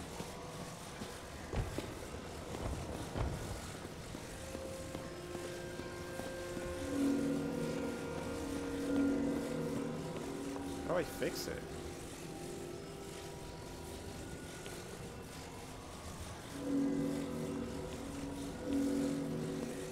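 A soft, shimmering hum drones steadily as an object is lifted and moved.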